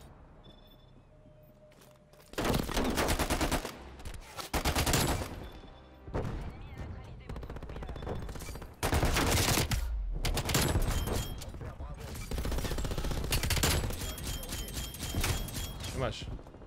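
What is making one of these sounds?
A young man talks with animation, close to a microphone.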